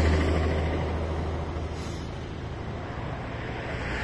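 A bus approaches from the distance with a low engine hum.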